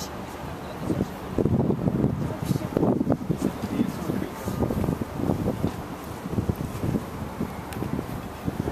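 Wind gusts and rumbles loudly against the microphone outdoors.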